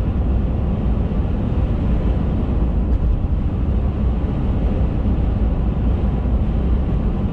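Tyres roar steadily on a highway as a car drives along.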